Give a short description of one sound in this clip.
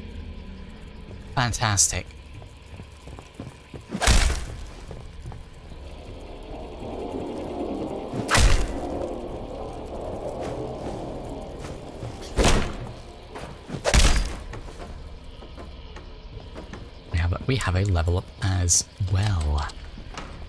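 Footsteps thud on creaking wooden floorboards.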